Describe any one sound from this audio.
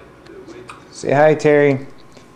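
A baby lets out a loud, high squeal.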